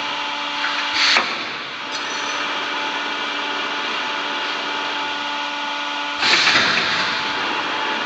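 Pneumatic heads on a machine hiss sharply as they move.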